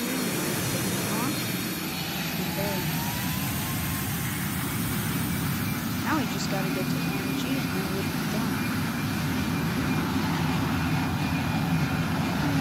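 Jet engines roar steadily as an airliner rolls down a runway.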